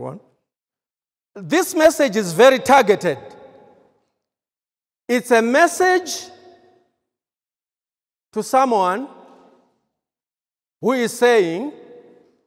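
A man speaks with emphasis in short bursts through a microphone, echoing in a large room.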